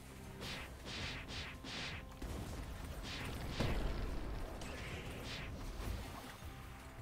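Magical blasts whoosh and crackle in quick bursts.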